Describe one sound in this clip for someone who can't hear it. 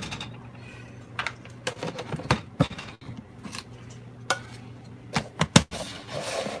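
A plastic lid snaps onto a container.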